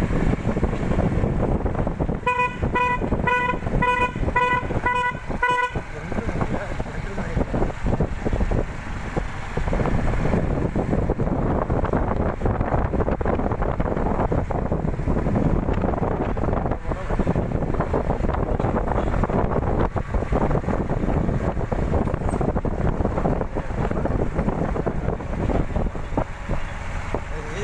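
A jeep engine rumbles steadily close by.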